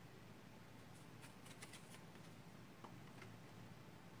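Cards tap softly as they are set down.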